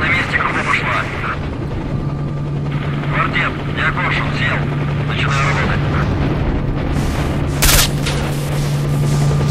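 A fire crackles and burns nearby.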